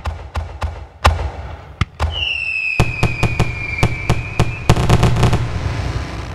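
Loud fireworks boom nearby, rumbling outdoors.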